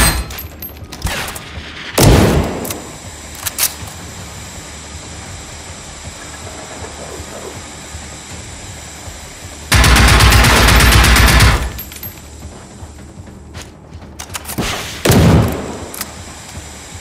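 A rifle is reloaded with sharp metallic clicks.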